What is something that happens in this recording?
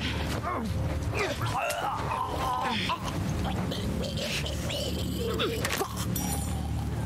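Two people scuffle and thud in a brief struggle.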